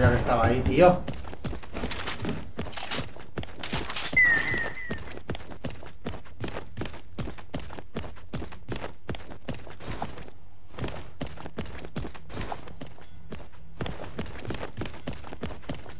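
Quick footsteps patter over a hard stone floor.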